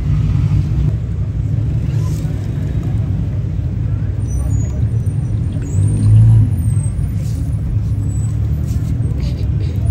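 A hand unscrews a metal filter with faint scraping.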